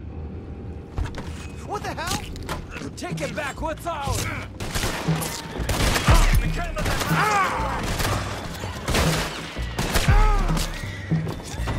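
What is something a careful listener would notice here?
Blows thump and thud in a scuffle.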